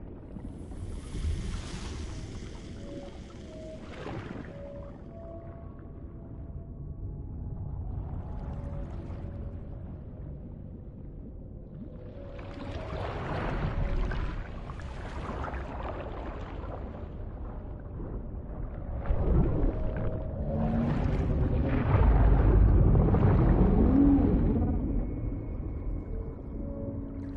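Water rumbles with a low, muffled underwater sound.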